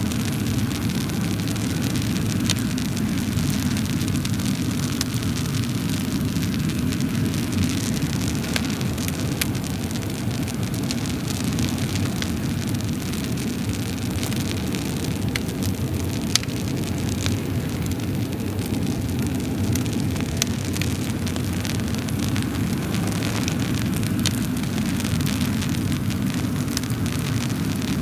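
A wood fire roars steadily with a low rumble.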